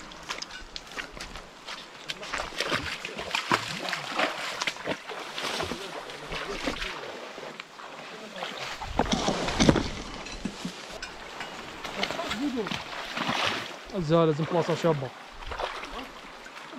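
A shallow stream trickles and babbles.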